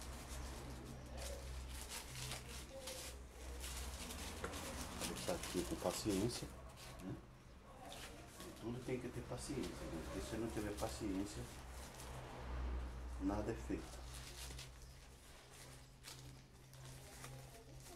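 Plant stems and leaves rustle and snap in a man's hands.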